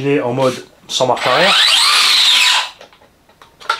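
An electric motor whirs loudly, rising and falling in pitch.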